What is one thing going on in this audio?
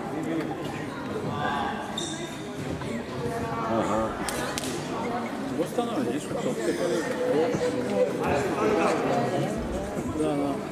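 Men talk in a large echoing hall.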